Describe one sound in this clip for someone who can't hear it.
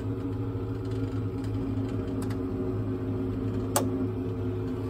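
A knob clicks on a cockpit panel.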